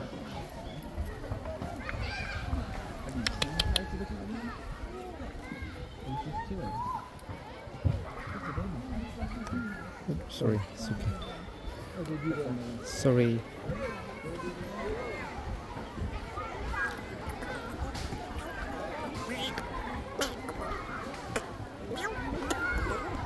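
A group of men and women talk and chatter nearby outdoors.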